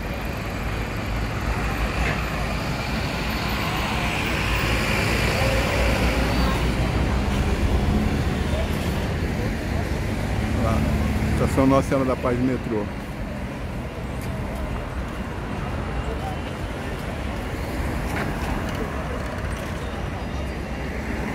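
City traffic hums and rumbles steadily outdoors.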